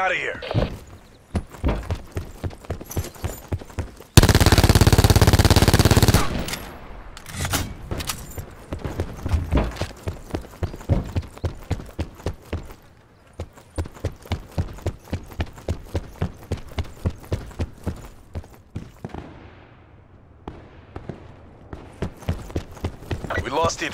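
Footsteps thud quickly and evenly on hard ground.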